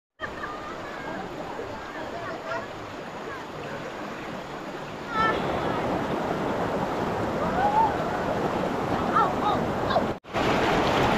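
A shallow river flows gently over stones.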